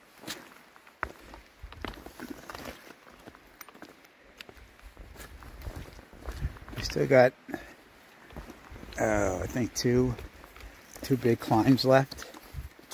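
Footsteps tread on a dirt and rocky trail.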